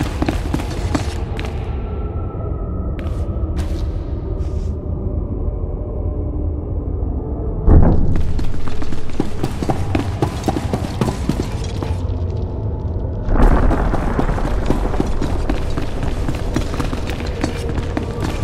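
Footsteps tread on a hard stone floor.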